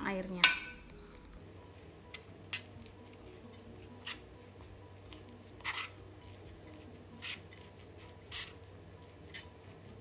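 A spoon scrapes against a coated pot while mixing shredded vegetables and flour.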